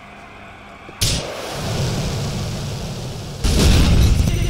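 A rocket launcher fires with a sharp whoosh.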